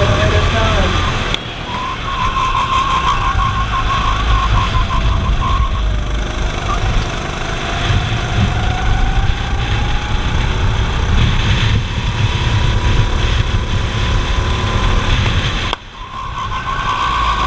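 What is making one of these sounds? A go-kart engine buzzes loudly close by, rising and falling in pitch with the throttle.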